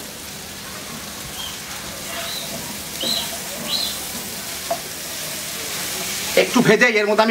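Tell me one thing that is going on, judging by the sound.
Vegetables sizzle in a hot pan.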